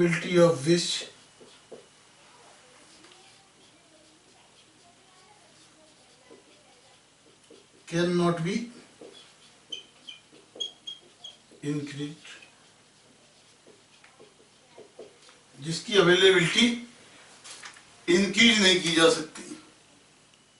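A man speaks loudly in short bursts, explaining.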